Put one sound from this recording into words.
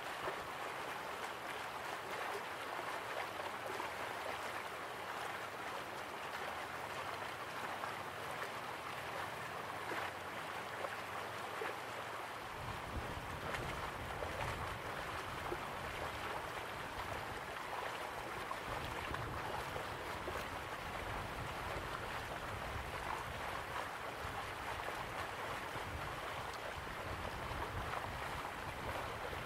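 A small waterfall splashes steadily into a pool.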